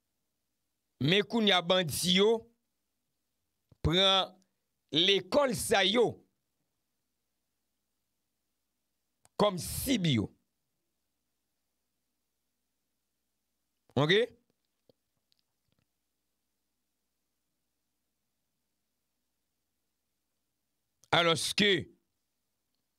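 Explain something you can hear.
A man speaks with animation into a close microphone, in short bursts with long pauses.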